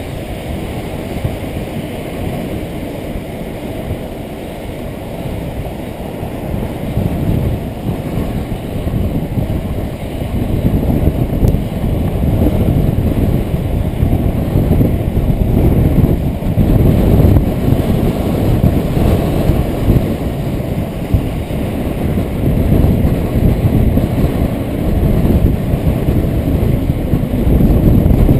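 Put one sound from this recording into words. Inline skate wheels roll over asphalt.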